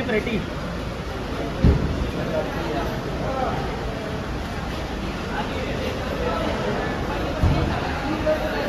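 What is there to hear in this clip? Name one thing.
A crowd murmurs and chatters in a busy echoing hall.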